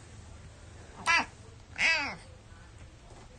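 A cat meows twice, short and close.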